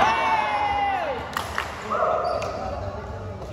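Young men shout and cheer with excitement in a large echoing hall.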